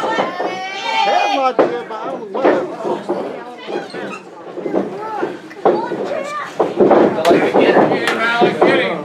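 A crowd of men and women shouts and cheers close by.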